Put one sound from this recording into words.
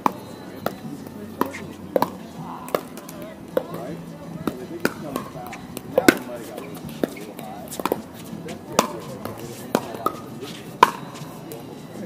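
Paddles pop sharply against a plastic ball, back and forth.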